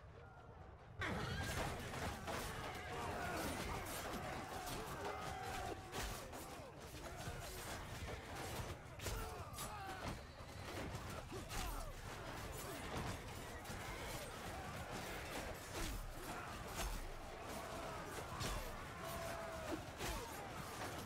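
Swords and shields clash and clang in a loud battle.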